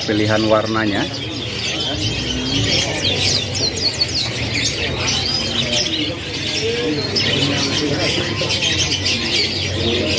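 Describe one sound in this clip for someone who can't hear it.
Many canaries chirp and trill loudly all around.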